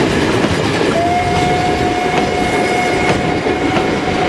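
Train wheels squeal on a curve.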